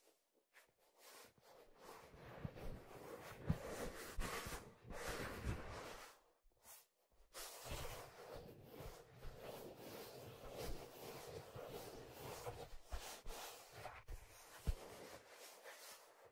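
Hands rub and squeeze stiff leather close to a microphone, making soft creaks and rustles.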